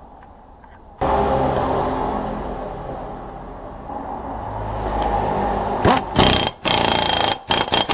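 A power impact wrench whirs and rattles loudly.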